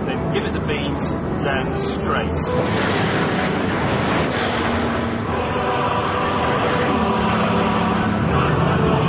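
Tyres rush loudly over the road.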